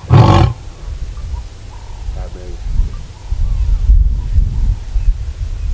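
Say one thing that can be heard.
A lion breathes heavily nearby.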